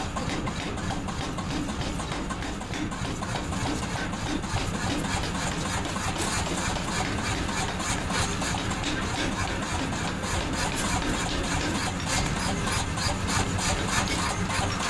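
A forging press pounds a red-hot iron bar.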